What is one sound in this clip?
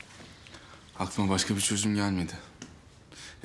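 A young man speaks calmly up close.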